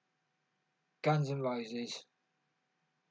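A middle-aged man speaks briefly into a nearby microphone.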